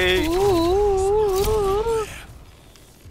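A video game victory jingle plays, a loud wavering tone.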